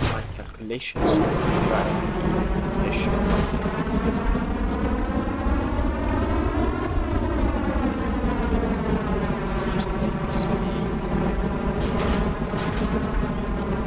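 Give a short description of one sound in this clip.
Jet engines roar loudly and steadily, their pitch rising and falling.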